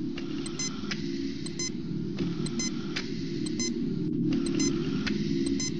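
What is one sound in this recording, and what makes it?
A medical monitor beeps in a steady rhythm.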